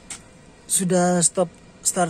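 A finger presses a car's push-button start switch with a soft click.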